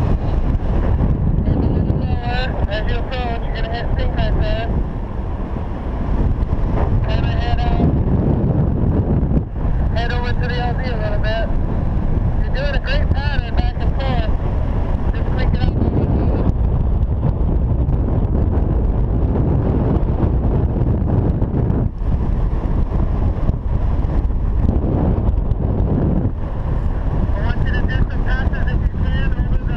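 Wind roars steadily across a microphone in flight outdoors.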